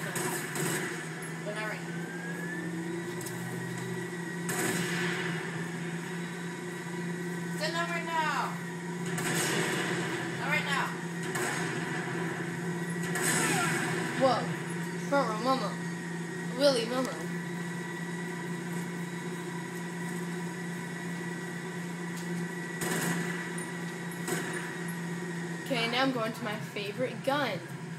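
Gunfire rattles from a video game.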